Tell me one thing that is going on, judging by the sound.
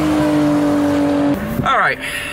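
Tyres squeal as a car slides.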